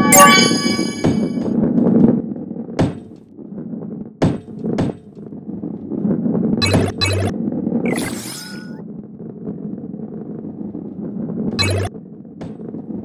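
A ball rolls along a wooden track with a low, steady rumble.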